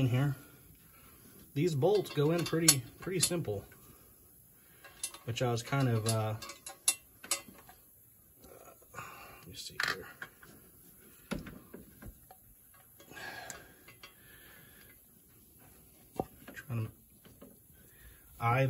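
Metal parts click and scrape as a hand works on an engine.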